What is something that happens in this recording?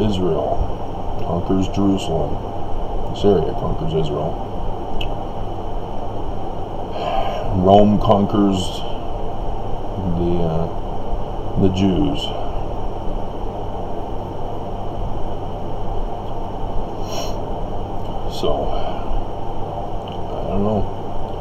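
A middle-aged man speaks quietly and haltingly, close to a microphone.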